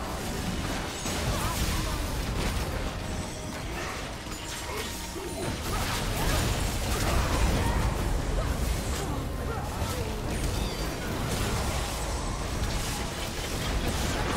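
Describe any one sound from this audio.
Heavy blows thud again and again.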